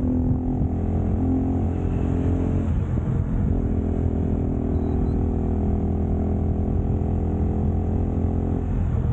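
A motorcycle engine hums steadily and shifts pitch.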